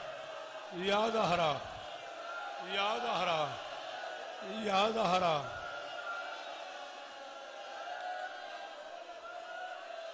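A large crowd murmurs in the background.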